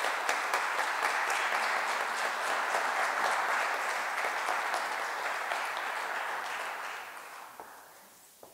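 Applause rings out in a large echoing hall and fades away.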